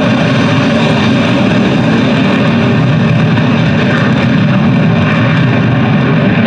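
A jet engine roars loudly and steadily overhead.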